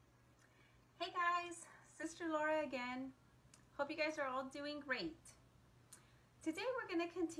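A young woman speaks warmly and calmly, close to the microphone.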